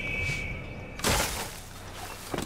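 A body lands heavily in a pile of hay.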